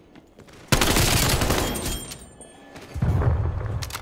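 Glass shatters loudly.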